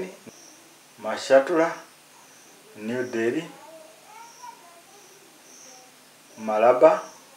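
An adult man speaks calmly and clearly into a close microphone, in short phrases with pauses.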